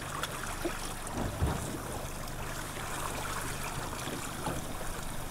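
Water laps against a small boat's hull.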